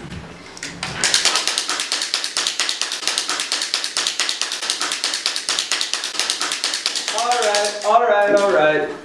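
A small handheld toy rattles rapidly and steadily.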